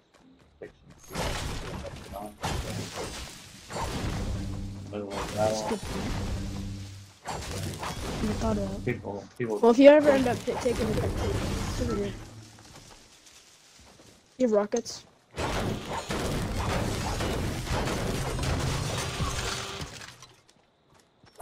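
Gunshots rattle in rapid bursts.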